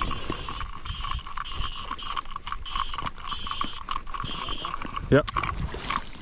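A fishing reel whirs and clicks as line is reeled in.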